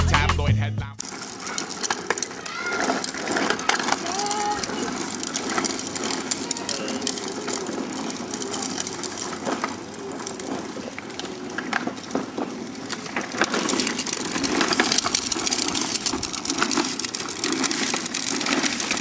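Plastic toy wheels rattle and scrape over concrete.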